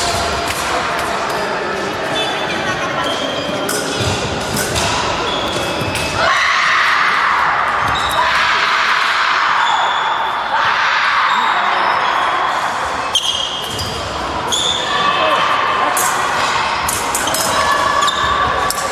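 Shoes squeak and shuffle on a wooden floor in a large echoing hall.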